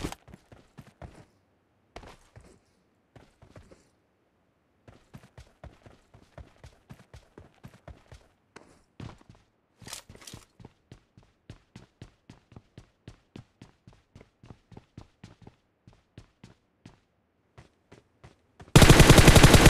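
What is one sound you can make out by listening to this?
Footsteps run quickly over hard ground and wooden floors.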